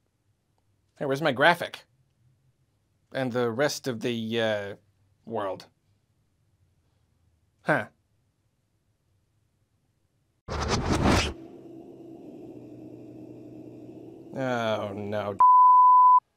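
A puppet character speaks in a playful, high, comic voice close by.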